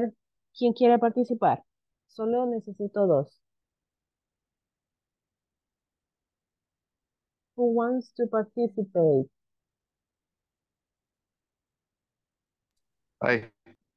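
A young woman speaks calmly through an online call, pausing between phrases.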